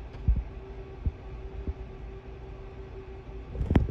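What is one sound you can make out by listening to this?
An aluminium bat cracks against a softball.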